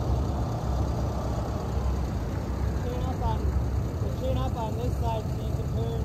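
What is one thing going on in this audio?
A pickup truck engine rumbles as the truck rolls up close and stops.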